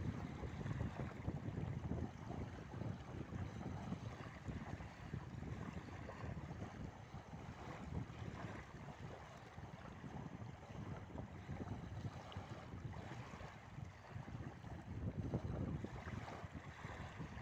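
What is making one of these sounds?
Wind gusts and buffets loudly outdoors.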